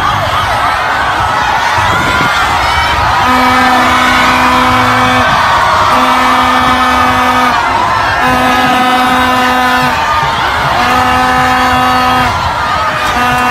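A large crowd cheers and screams loudly outdoors.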